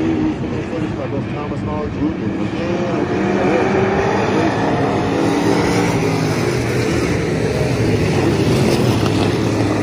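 A crowd chatters nearby.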